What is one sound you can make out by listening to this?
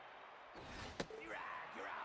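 A ball smacks into a catcher's mitt with a sharp pop.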